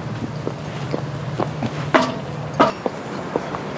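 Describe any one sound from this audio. High heels click on pavement.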